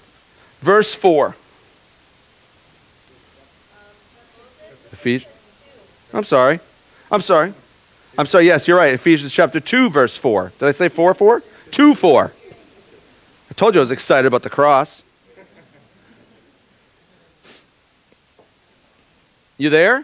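A man speaks calmly into a microphone in bursts, with pauses.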